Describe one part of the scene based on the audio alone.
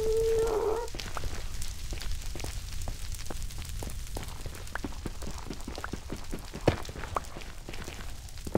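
A pickaxe taps rapidly at stone blocks.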